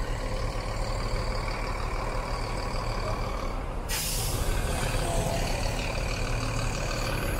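A bus engine rumbles close by.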